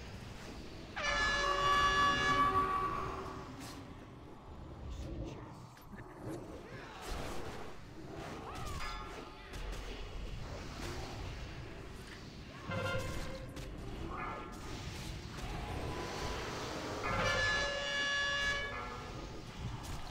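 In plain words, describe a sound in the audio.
Chiming magic spell effects ring out in a video game battle.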